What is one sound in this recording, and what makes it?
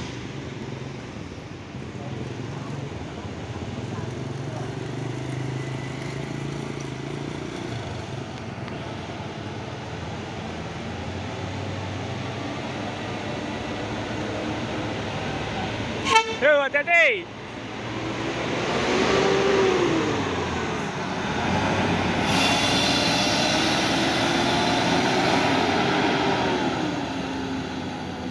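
A bus engine rumbles as it approaches, passes close by and pulls away.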